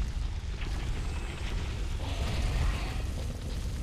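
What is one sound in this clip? A sword swings and clangs against stone.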